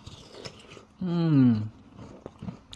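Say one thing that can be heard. A young man hums briefly with his mouth full.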